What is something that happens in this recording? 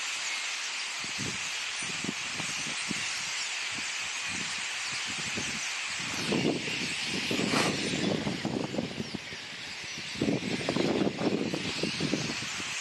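A huge flock of starlings chatters and twitters loudly and without pause.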